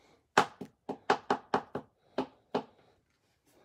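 Stiff trading cards snap and click against each other as hands flip through them.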